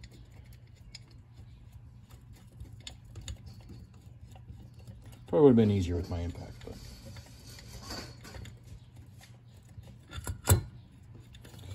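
A socket wrench clicks as bolts are loosened.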